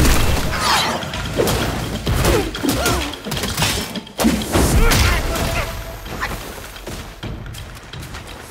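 Weapons clash and strike hard in a fight.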